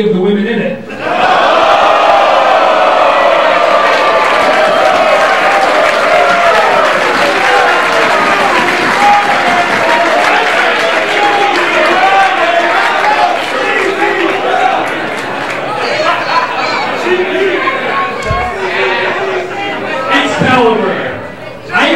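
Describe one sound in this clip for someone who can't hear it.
A man talks loudly into a microphone, heard through loudspeakers in a large echoing hall.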